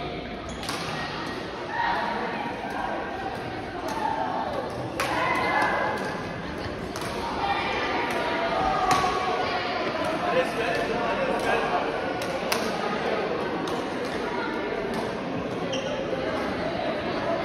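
Men talk and call out to each other across the courts.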